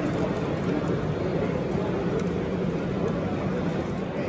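Model train wagons rattle and clatter along a track.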